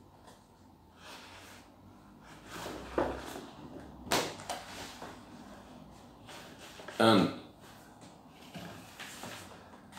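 A large cardboard sheet rustles and scrapes as it is handled.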